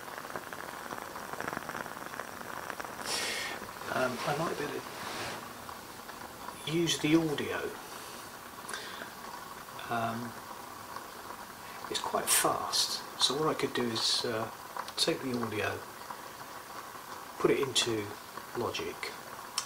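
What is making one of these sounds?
A candle wick crackles and spits softly.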